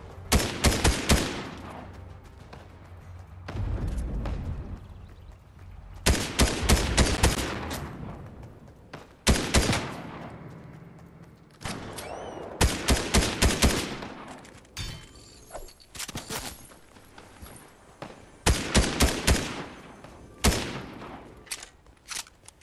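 Gunfire rings out in quick bursts of shots, echoing after each burst.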